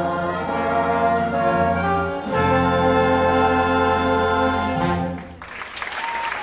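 A cast sings a loud final chord in a large hall.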